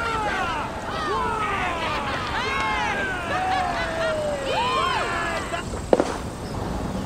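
Birds chirp and cry overhead.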